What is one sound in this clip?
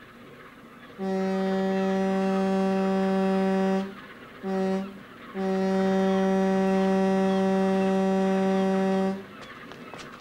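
A ship's horn sounds in two long, deep blasts.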